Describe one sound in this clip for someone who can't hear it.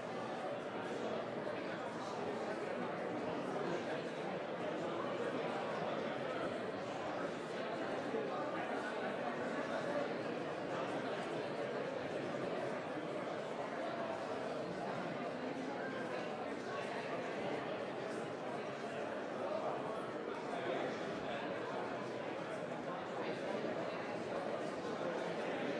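A crowd of men and women murmur and chatter in a large room.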